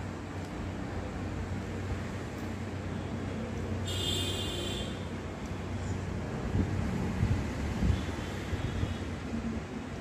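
A finger cracks open a crisp puri shell.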